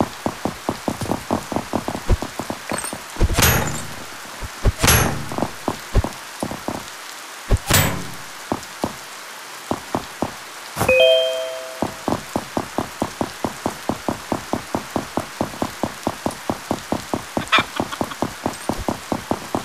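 Rain falls softly.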